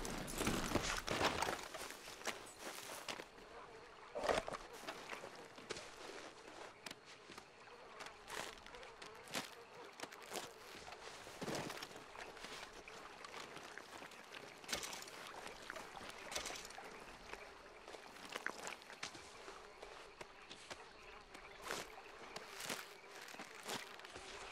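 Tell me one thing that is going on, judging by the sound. Footsteps squelch on wet mud.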